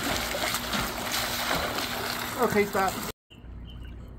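Water splashes loudly as a swimmer strokes through it.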